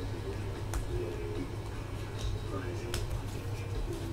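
Plastic card cases clack softly as hands handle them.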